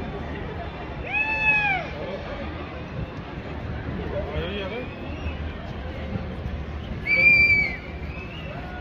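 People in a crowd whoop and cheer loudly.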